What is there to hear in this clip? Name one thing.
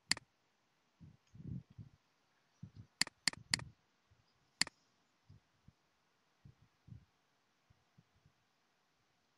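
A man speaks quietly in short bursts into a close microphone.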